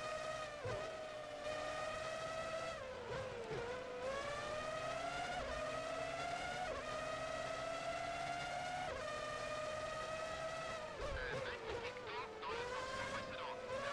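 A racing car engine whines at high revs, rising through the gears and dropping as it slows for corners.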